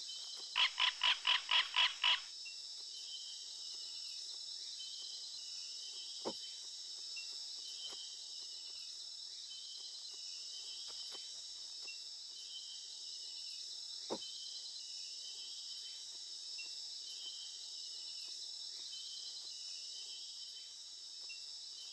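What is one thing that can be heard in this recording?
A large animal's footsteps pad softly over the ground.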